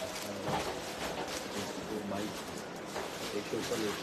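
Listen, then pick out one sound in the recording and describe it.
Plastic sacks rustle and crinkle.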